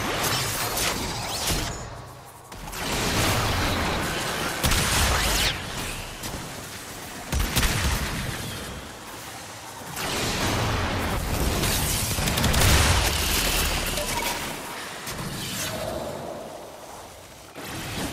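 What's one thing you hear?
Energy weapons fire in loud whooshing blasts.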